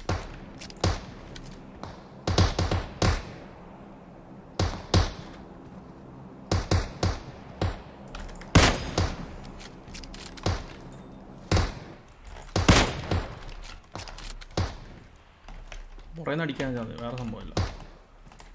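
Gunshots crack out one after another, sharp and loud.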